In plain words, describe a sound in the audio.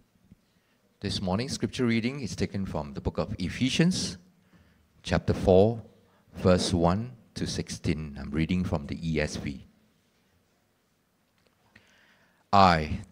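A man reads out aloud through a microphone.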